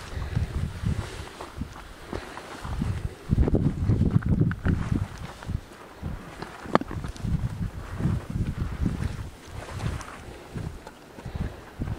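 Wind buffets the microphone in strong gusts outdoors.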